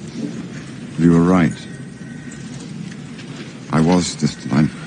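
A middle-aged man speaks quietly and slowly.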